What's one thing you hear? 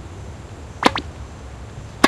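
A racket hits a shuttlecock.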